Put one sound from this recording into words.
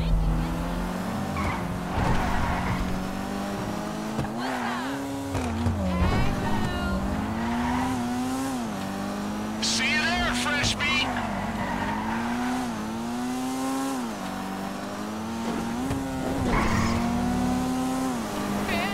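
A car engine revs up and down as it speeds along.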